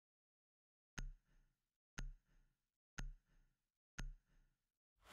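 Short electronic beeps count down, one each second.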